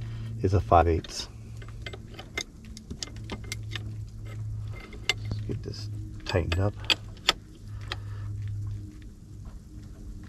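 A wrench clicks against a metal pipe fitting.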